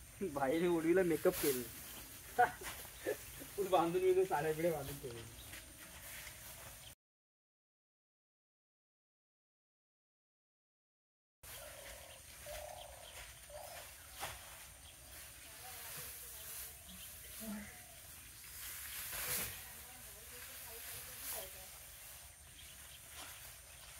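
Dry straw rustles as bundles are stacked.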